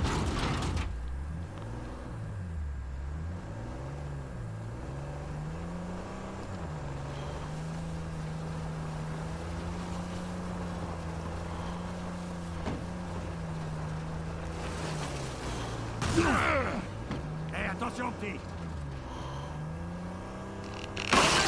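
A jeep engine hums and revs as it drives along.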